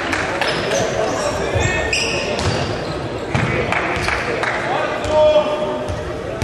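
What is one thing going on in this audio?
Sneakers squeak sharply on the hall floor.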